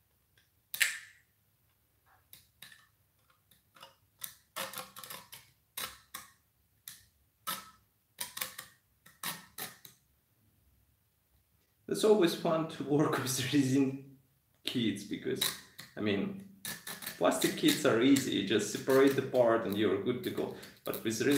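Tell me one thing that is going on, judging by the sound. A blade scrapes and clicks against a small plastic part.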